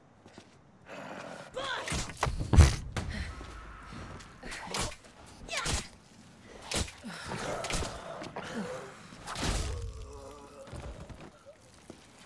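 Heavy blows thud against a body.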